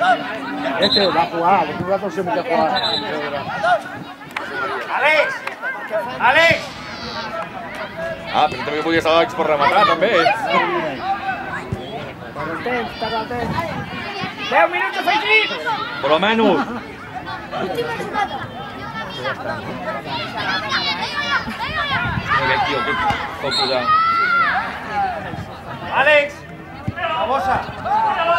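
Children shout across an outdoor pitch.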